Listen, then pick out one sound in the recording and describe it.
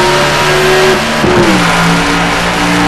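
A racing car engine drops in pitch briefly as it shifts gear.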